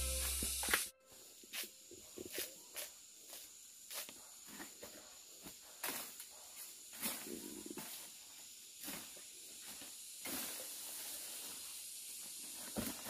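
Footsteps crunch and rustle through dry leaves and undergrowth.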